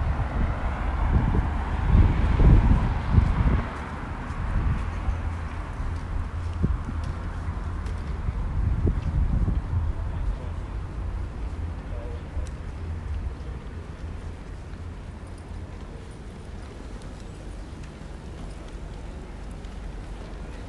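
Footsteps of passers-by tap on pavement nearby.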